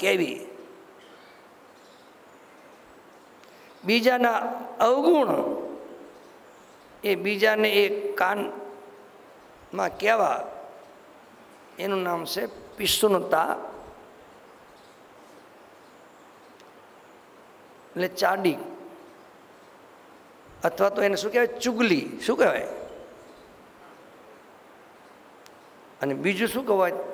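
An elderly man speaks slowly and calmly into a microphone, in short phrases with long pauses.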